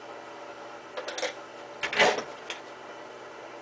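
A hand tool clicks and clatters against a metal light fixture.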